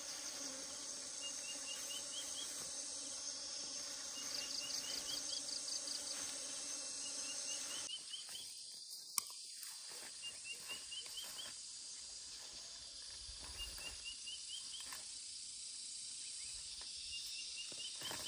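Leafy plants rustle as a man pushes through them and pulls at stems.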